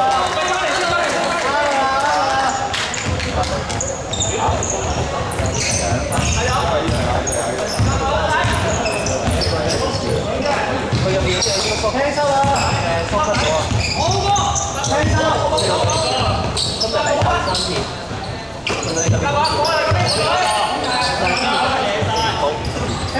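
Young men shout and call to each other across the court.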